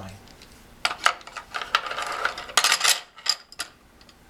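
Wooden sticks clatter as they are dropped into a wooden tray.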